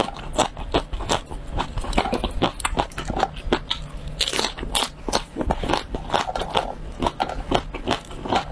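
Fresh peppers snap between fingers close by.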